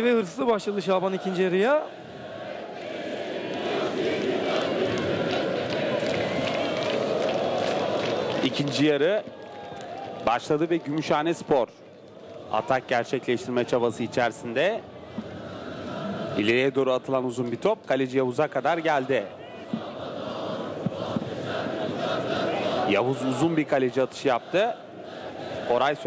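A large crowd murmurs and chants steadily in an open stadium.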